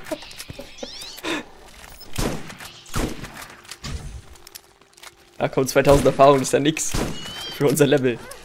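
A rifle fires sharp shots in short bursts.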